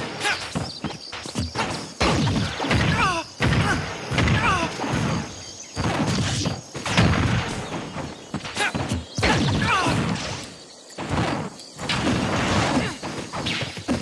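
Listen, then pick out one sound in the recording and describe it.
Punches and kicks thud and crack in a fast fighting game.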